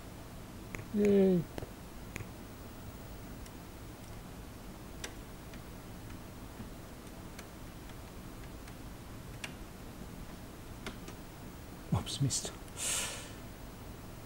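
A man says a few words briefly, close to a microphone.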